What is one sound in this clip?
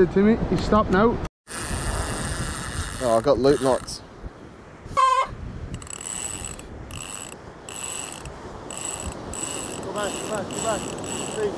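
A man talks casually close by, outdoors in light wind.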